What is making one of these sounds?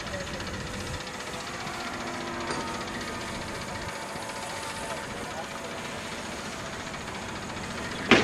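A model plane's electric motor whines faintly overhead.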